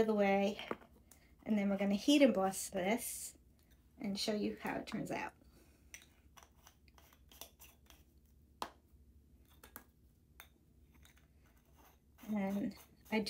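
Small plastic jar lids click and scrape as they are twisted open and shut.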